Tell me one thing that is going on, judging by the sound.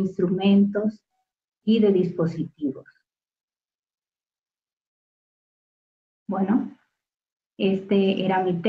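A woman speaks calmly over an online call, pausing between phrases.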